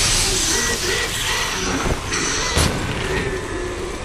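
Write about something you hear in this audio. A burst of sparks explodes with a sharp crack.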